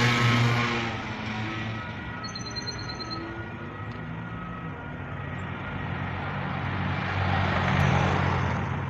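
Heavy construction machinery rumbles steadily outdoors.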